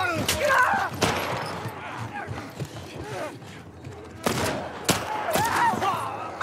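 Gunshots crack loudly.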